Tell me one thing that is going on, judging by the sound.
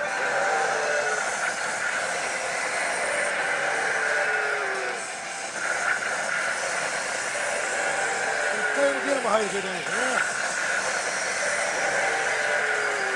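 A slot machine plays loud electronic music and jingles.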